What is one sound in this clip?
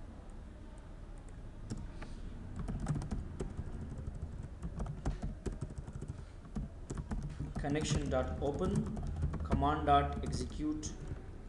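Keys on a keyboard click and clatter in short bursts.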